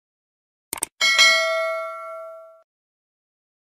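A small bell rings once and fades.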